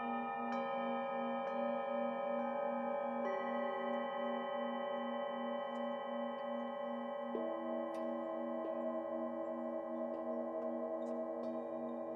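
Singing bowls ring with long, layered, wavering tones.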